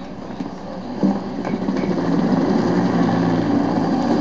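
Helicopters roar overhead with thumping rotors.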